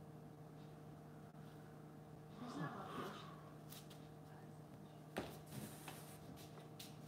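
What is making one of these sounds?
A painted board is shifted on a hard floor with soft knocks and scrapes.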